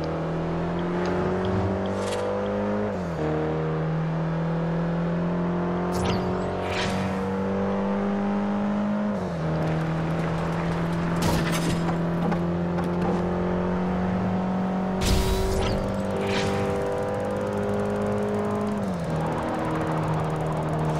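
A racing car engine roars at high speed, its pitch climbing and dropping with each gear change.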